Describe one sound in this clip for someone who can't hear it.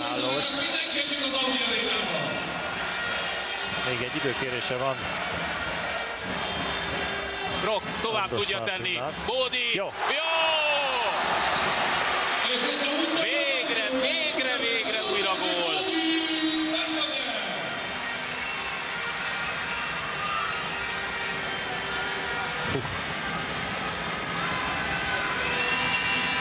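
A large crowd cheers and roars in an echoing hall.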